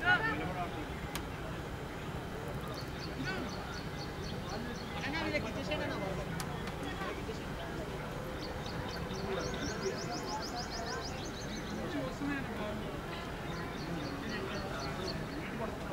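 Several men talk and call out to each other in the distance outdoors.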